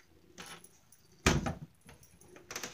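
A cat paws and scratches at a door.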